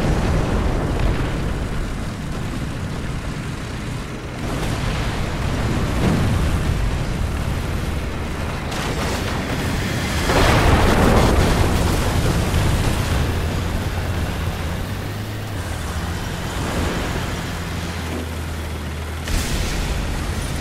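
A tank's tracks grind and clatter.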